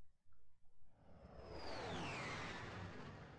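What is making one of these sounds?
A comet streaks past with a rushing whoosh.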